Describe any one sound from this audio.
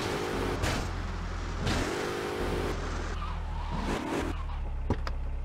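A car engine rumbles and revs.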